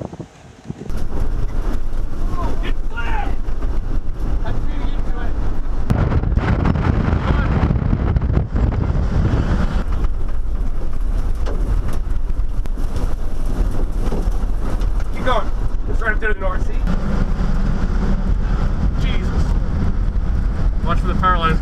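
Strong wind roars and buffets against a vehicle.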